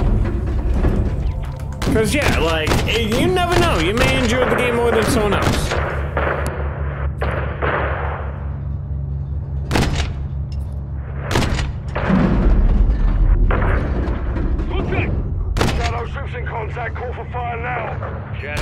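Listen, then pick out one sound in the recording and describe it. Heavy cannon shells explode with loud booms.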